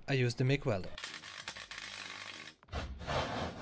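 An electric welder crackles and hisses steadily.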